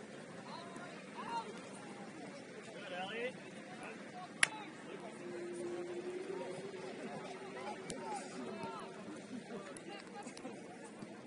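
Young men shout to each other in the distance.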